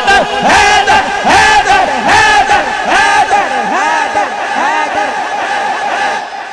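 A crowd claps hands in rhythm.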